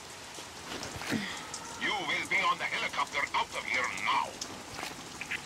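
A woman answers firmly through a radio.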